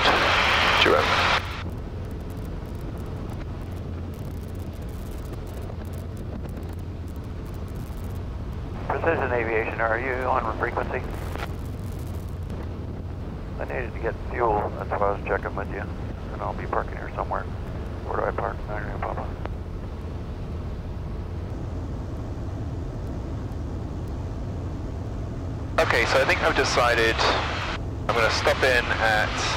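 A small plane's engine drones steadily.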